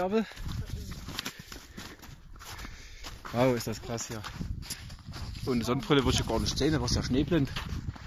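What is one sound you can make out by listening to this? Footsteps crunch in snow.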